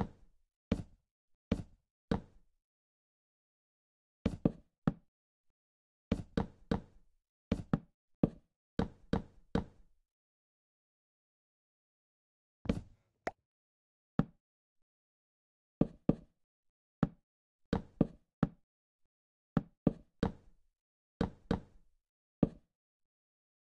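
Wooden blocks knock dully as they are placed one after another, in short bursts.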